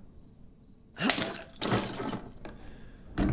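Bolt cutters snap through a metal chain with a sharp clank.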